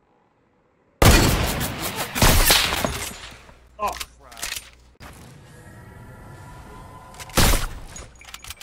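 Sniper rifle shots crack loudly.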